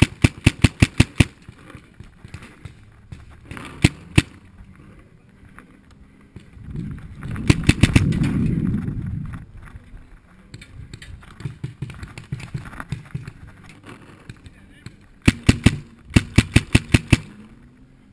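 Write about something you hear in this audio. A paintball marker fires rapid bursts of shots close by.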